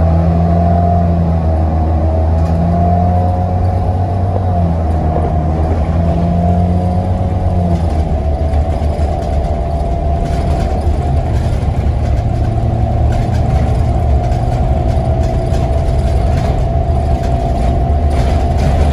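Bus tyres rumble on the road.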